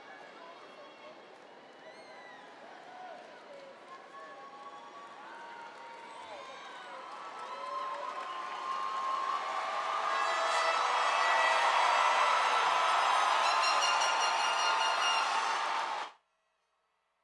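A large crowd cheers and shouts in a big echoing hall, growing louder and then stopping abruptly.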